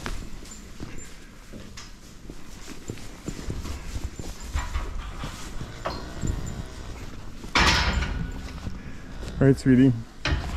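Footsteps rustle through straw.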